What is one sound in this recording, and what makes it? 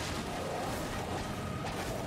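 A sword swings through the air with a whoosh.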